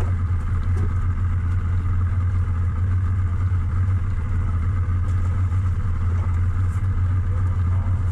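Wind rumbles across a microphone outdoors over open water.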